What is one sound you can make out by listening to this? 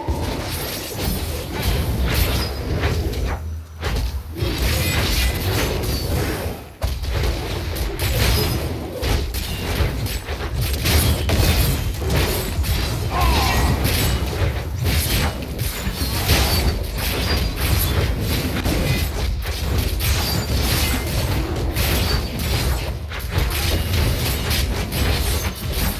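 Fiery spells burst and crackle in a game's battle.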